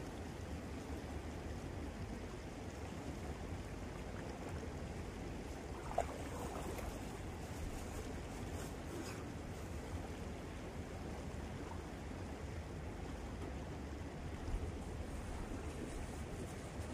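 A river flows with a steady soft rush.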